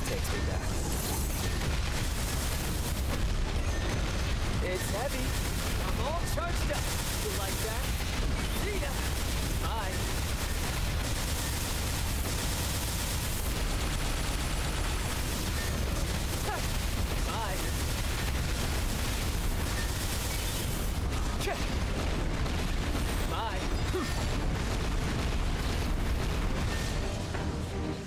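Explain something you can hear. Game laser beams and magic blasts crackle and boom without pause.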